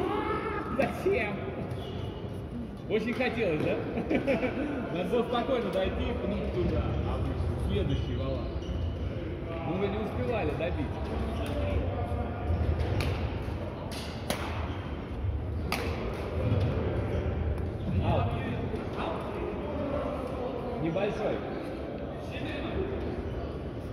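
Young women and men talk and call out across an echoing hall.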